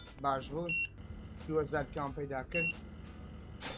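A checkout scanner beeps twice.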